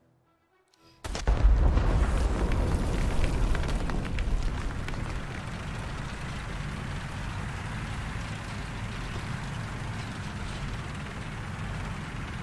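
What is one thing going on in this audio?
A tank engine rumbles loudly and steadily.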